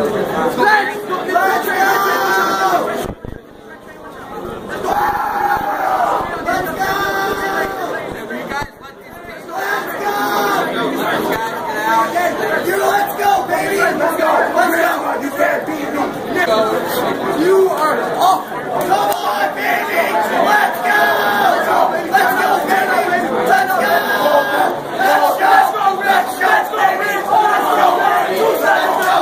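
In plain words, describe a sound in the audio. A crowd of young men chants loudly in unison.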